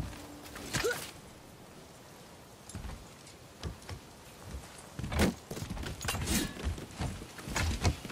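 Hands and feet knock against wood while climbing.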